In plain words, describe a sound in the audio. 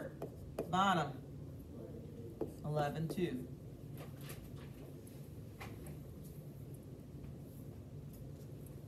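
A marker squeaks on a board.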